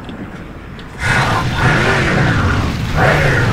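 A vehicle engine rumbles and revs.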